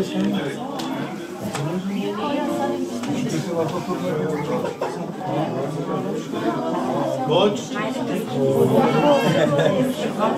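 Several men and a woman talk over one another nearby.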